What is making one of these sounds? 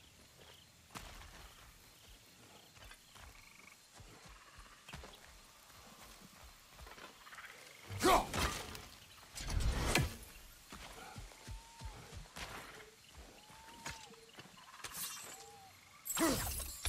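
Heavy footsteps crunch through undergrowth.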